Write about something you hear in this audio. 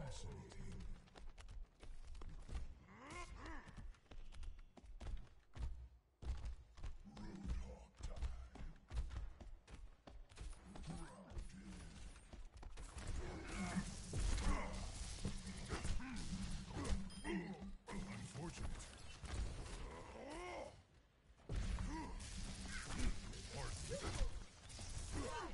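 Gunfire crackles from a video game.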